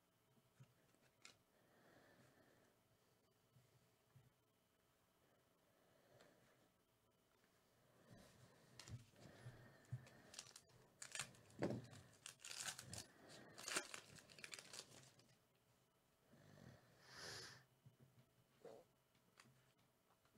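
Cards shuffle and slide against each other in hands.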